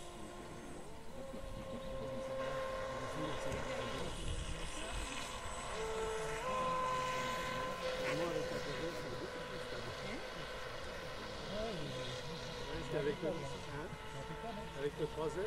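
A small model boat motor whines steadily across the water, its pitch shifting as it speeds up and slows.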